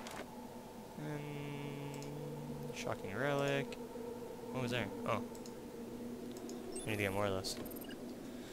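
Short electronic menu tones chime and chirp.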